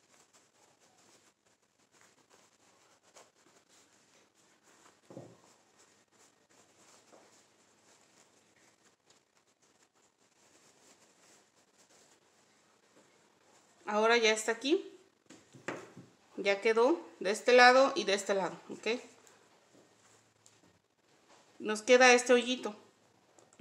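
Fabric rustles softly as it is handled and folded.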